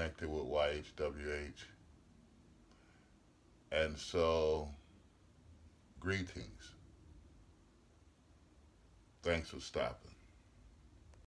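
An elderly man speaks calmly and close up, in short phrases with pauses.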